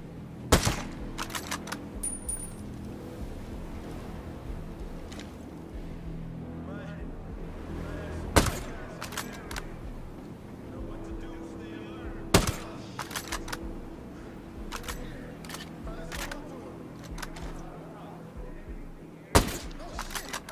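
A rifle fires loud single shots, each with a short echo.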